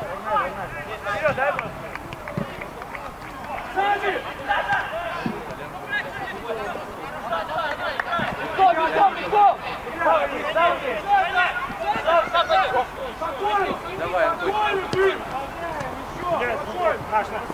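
A football thuds as players kick it across the pitch.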